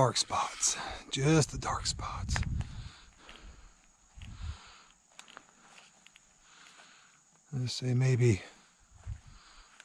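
Footsteps crunch over dry leaves and forest floor.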